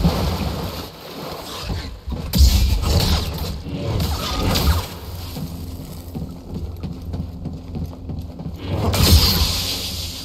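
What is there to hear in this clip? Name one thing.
Blades clash with sharp, crackling impacts.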